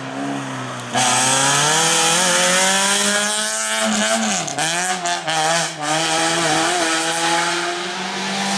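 A race-prepared hatchback passes close by and pulls away into the distance.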